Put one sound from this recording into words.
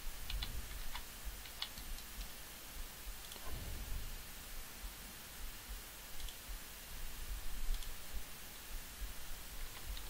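Magic spells crackle and chime in quick bursts.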